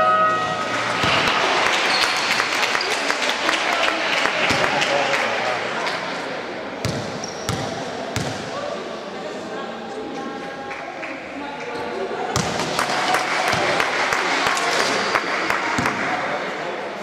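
Spectators cheer and chatter in a large echoing hall.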